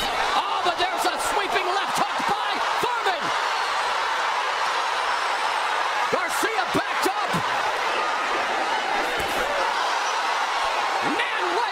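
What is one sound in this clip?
A large crowd cheers and roars loudly.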